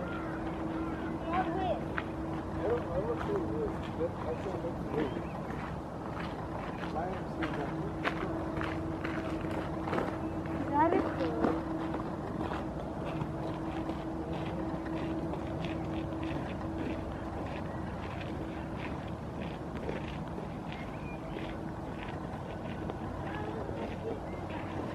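Water ripples and laps softly as a gull swims.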